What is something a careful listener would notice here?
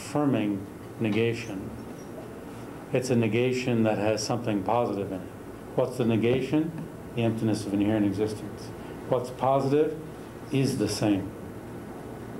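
A middle-aged man speaks calmly and with animation nearby.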